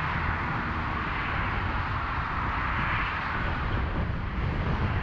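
A car rushes by close by, its tyres hissing on the road.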